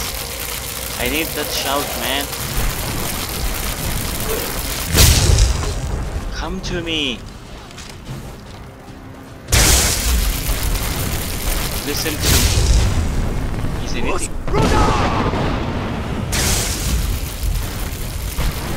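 Electricity crackles and buzzes loudly in bursts.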